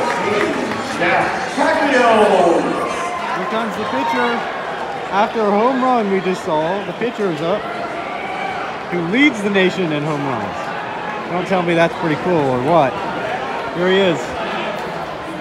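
Fans shout and cheer loudly nearby.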